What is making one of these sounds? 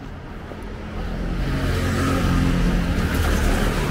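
A motor scooter's engine drones nearby and grows louder.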